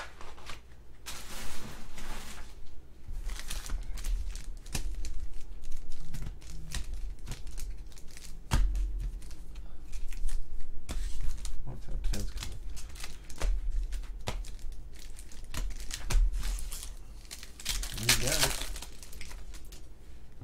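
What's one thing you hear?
Foil card packs crinkle and rustle as hands handle them.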